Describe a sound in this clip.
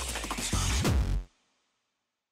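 Fast electronic dance music plays loudly and then cuts off abruptly.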